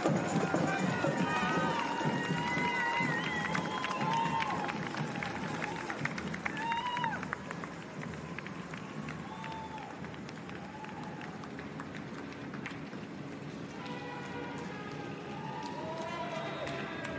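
Runners' footsteps patter on pavement.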